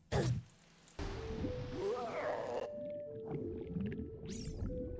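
Water splashes and ripples.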